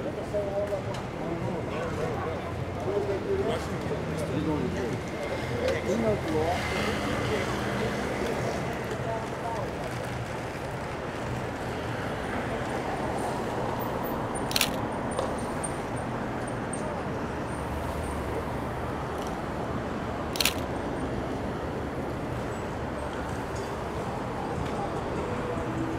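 City traffic hums steadily in the street.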